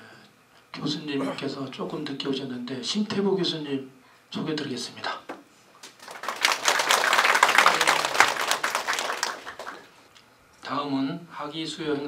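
A man speaks calmly through a microphone in an echoing hall.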